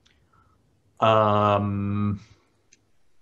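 A man makes a long, drawn-out sound of hesitation over an online call.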